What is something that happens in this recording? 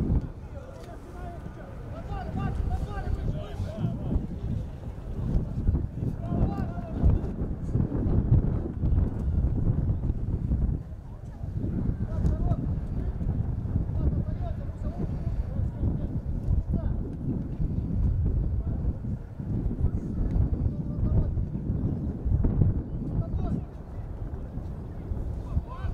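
Men shout to each other outdoors, heard from a distance.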